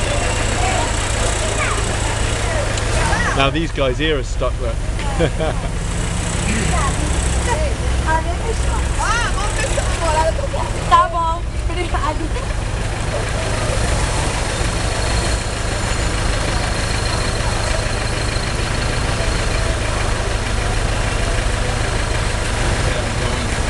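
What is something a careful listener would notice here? Cars drive slowly past on a street.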